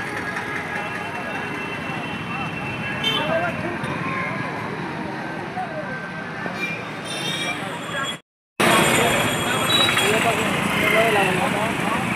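Motorbike engines idle nearby.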